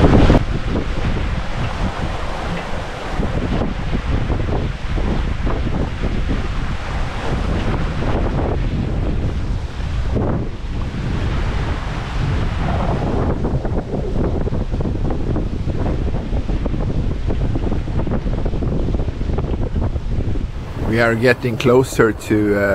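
Wind blows hard and buffets outdoors.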